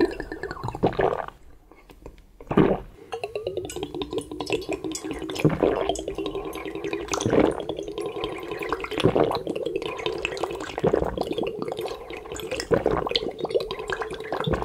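A man gulps down liquid loudly, close up.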